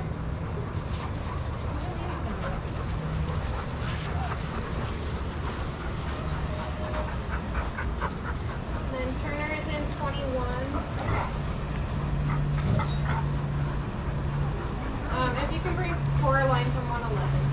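Dogs scuffle and pad across sand while playing.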